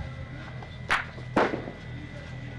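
Heavy boules knock against each other on a lane.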